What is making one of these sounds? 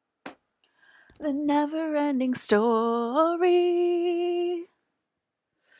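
A woman close to a microphone makes long, drawn-out vocal sounds.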